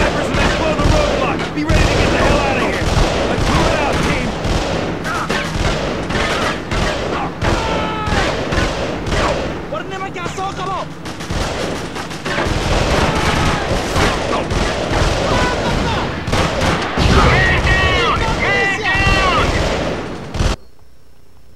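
Rapid gunfire crackles and bangs.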